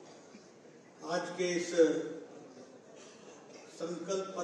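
An older man speaks calmly into a microphone, amplified in a large hall.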